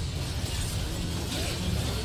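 Game spell effects crackle and clash during a fight.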